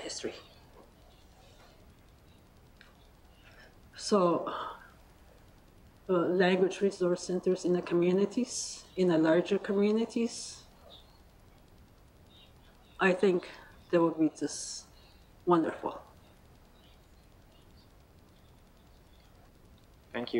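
An elderly woman speaks slowly into a microphone, in short halting phrases with long pauses.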